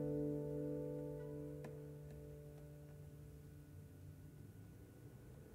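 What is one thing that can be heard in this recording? A chord on two guitars rings out and slowly fades.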